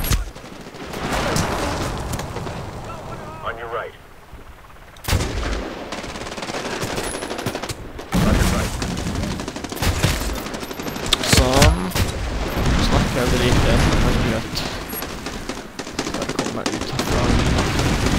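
A rifle bolt clicks as it is worked and reloaded.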